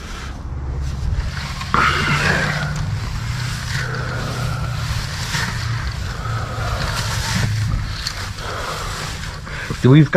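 A hand rustles and rummages through dry hay close by.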